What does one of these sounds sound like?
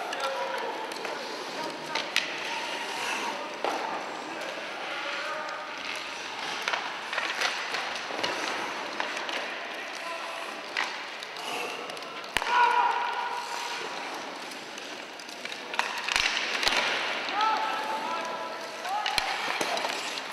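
Sledge blades scrape and hiss across the ice.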